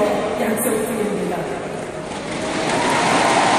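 A middle-aged woman speaks firmly into a microphone, heard through loudspeakers in a large echoing hall.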